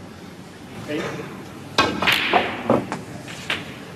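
A snooker cue strikes the cue ball.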